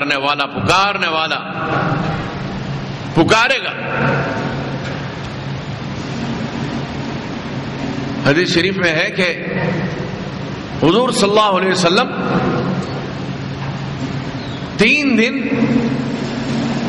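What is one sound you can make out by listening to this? An elderly man speaks with feeling through a microphone in an echoing hall, in bursts with pauses between them.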